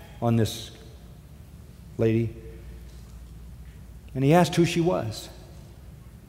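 An elderly man speaks slowly and deliberately through a microphone in a large room.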